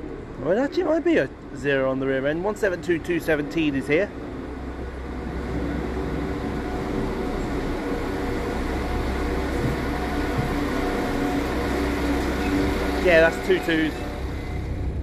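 A diesel train rumbles as it pulls into a station.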